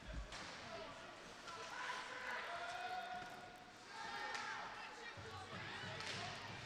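Ice skates scrape across the ice in an echoing rink.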